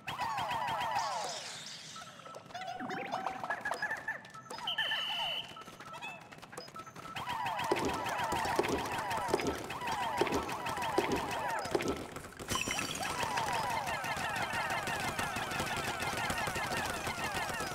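Small cartoon creatures chatter in rapid, high squeaky chirps.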